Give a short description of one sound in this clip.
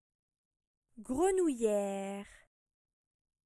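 A woman says a short word clearly and close to a microphone.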